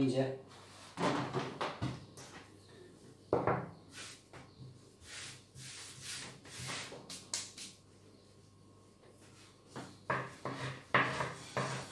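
Soft dough is patted and pressed.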